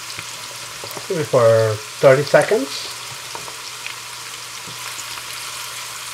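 A wooden spatula scrapes and stirs in a frying pan.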